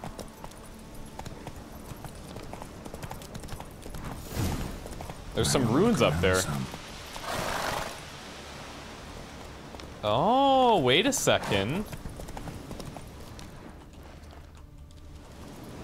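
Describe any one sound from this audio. A horse trots with hooves thudding on a dirt path.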